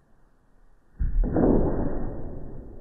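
A cat lands on the floor with a soft thud.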